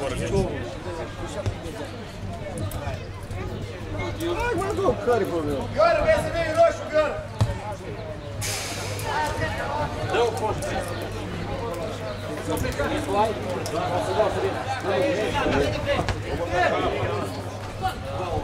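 Men shout and talk with animation close by, outdoors.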